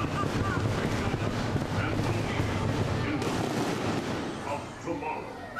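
A ride rumbles loudly along its track.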